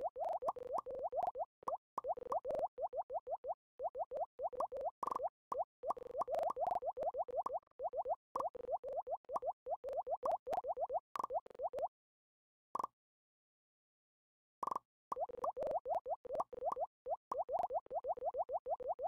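Quick, bright game blips sound as pipe pieces click into place.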